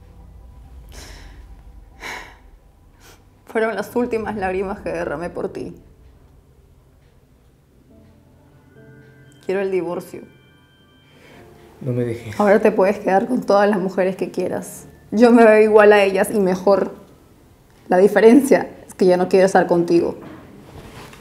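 A young woman speaks close by in a tense, emotional voice.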